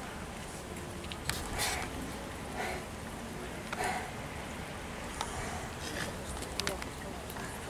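Water laps gently as ducks paddle past.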